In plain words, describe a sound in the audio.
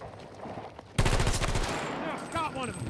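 Rapid gunfire rattles in a short burst.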